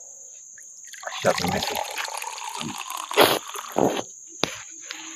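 Water pours into a small pot.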